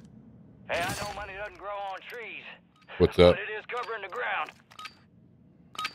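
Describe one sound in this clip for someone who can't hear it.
A gun is drawn and swapped with metallic clicks.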